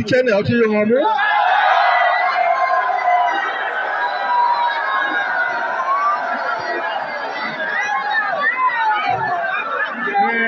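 A large crowd outdoors cheers and chants.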